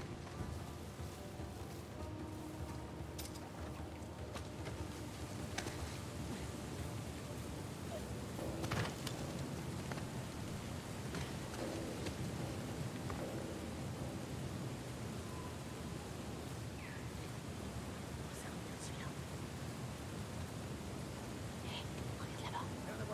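A man talks calmly into a microphone.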